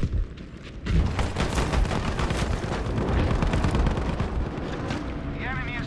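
Rapid gunfire cracks and rattles.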